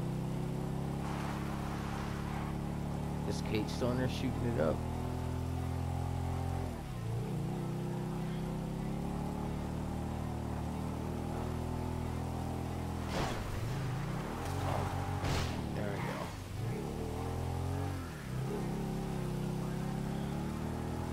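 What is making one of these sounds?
A motorcycle engine hums steadily, shifting gears now and then.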